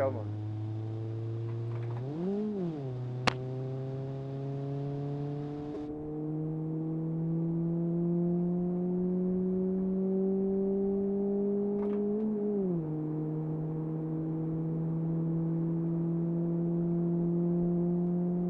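A car engine hums steadily, slowly rising in pitch as it speeds up.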